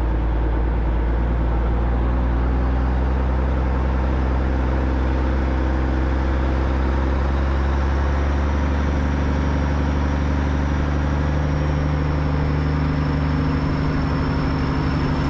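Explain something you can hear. A motorcycle engine rumbles steadily at low speed.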